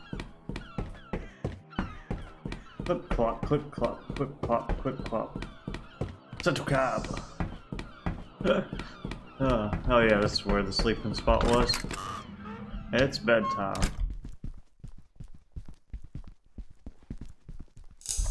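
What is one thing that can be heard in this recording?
Quick footsteps patter as a figure runs.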